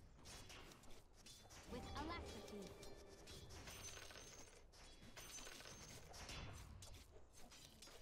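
Battle sound effects clash and crackle rapidly.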